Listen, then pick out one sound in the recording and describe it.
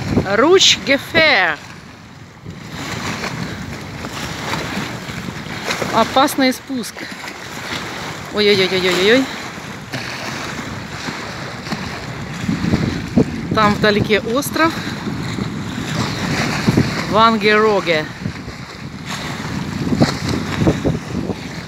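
Small waves wash and splash against a concrete edge.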